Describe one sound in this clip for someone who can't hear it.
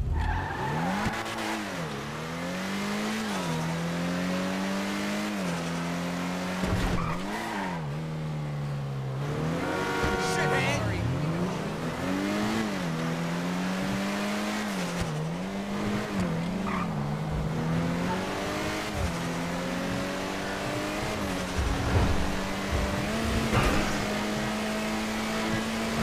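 A car engine revs up and down as gears change.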